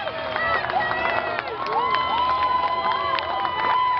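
Fans clap their hands.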